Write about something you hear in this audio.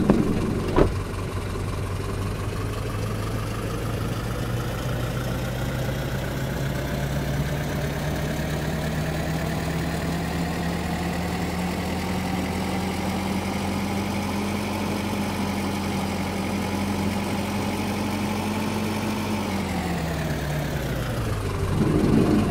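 A bus engine drones, rising in pitch as the bus gathers speed, then winding down.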